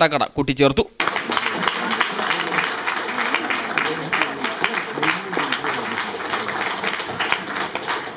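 A crowd applauds and claps hands.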